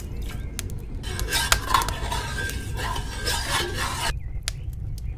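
A spoon scrapes and clinks against a metal bowl.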